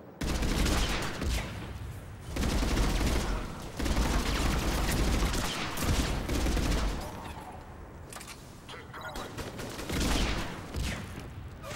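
Rapid gunfire blasts in loud bursts.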